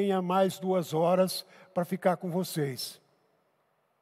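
A middle-aged man speaks calmly into a headset microphone.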